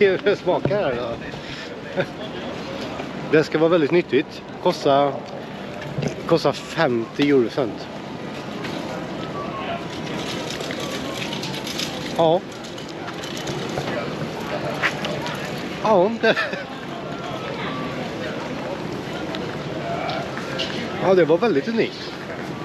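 A man talks casually and close up into a microphone.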